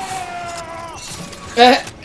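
Small explosions boom.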